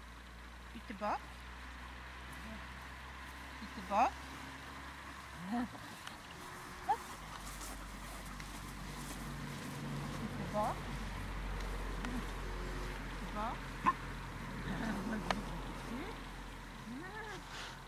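A spaniel whines in high yelps.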